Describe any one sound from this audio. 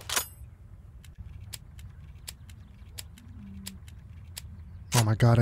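A rifle's bolt and cartridges click during reloading.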